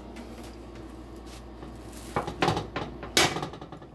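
Fingers tap on soft bread rolls.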